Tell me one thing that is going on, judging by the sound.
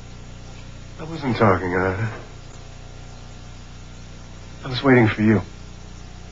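A man speaks calmly in short phrases nearby.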